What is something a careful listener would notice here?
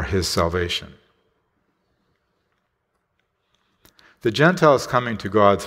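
A man reads out calmly through a microphone, pausing between phrases.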